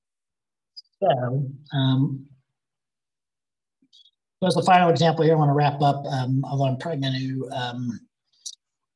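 A man speaks calmly through a microphone, as on an online call.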